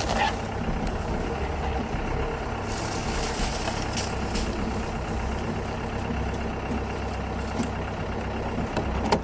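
A vehicle engine rumbles low and steady while driving over rough ground.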